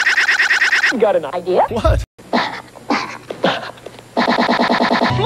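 A man speaks with animation in a stuttering, electronic-sounding voice.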